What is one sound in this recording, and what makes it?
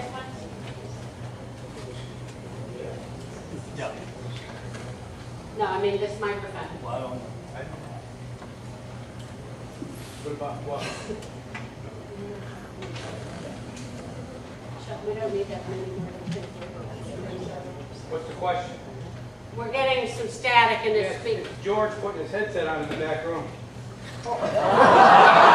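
An elderly man speaks calmly into a microphone over a loudspeaker.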